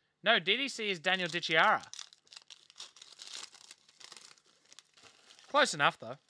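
Cardboard and plastic wrapping rustle and tear.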